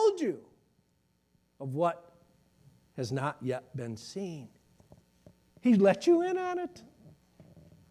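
A middle-aged man speaks with animation through a microphone in a large room.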